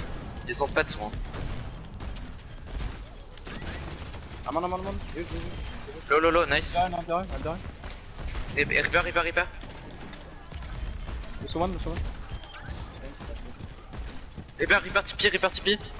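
A grenade launcher fires.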